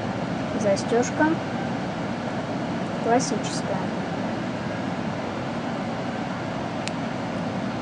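A metal watch clasp clicks shut.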